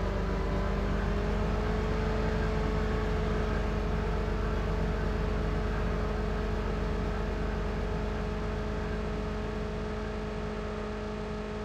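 A motorcycle engine hums steadily at speed, fading slightly toward the end.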